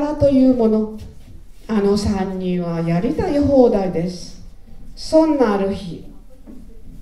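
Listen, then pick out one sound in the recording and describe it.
An elderly woman recites in a drawn-out, sing-song voice through a microphone in a large hall.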